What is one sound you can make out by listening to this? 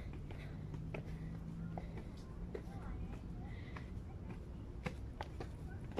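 A man runs by on stone steps.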